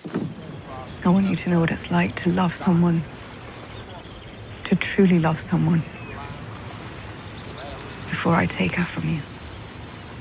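A woman speaks calmly and coldly nearby.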